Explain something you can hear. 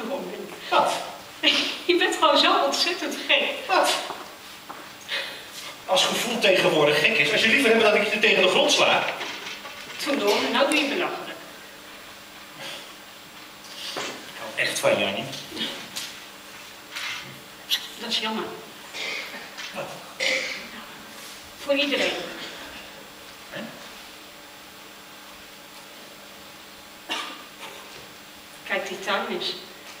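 A man speaks loudly and with expression from a stage, heard from far off in an echoing hall.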